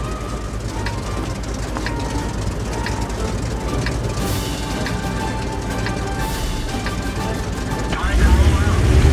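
A tank engine idles with a low rumble.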